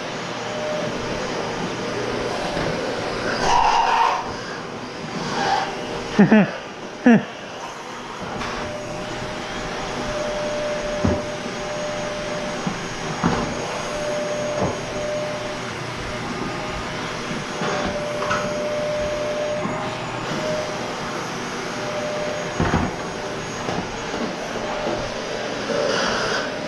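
A vacuum cleaner hums steadily in a nearby room.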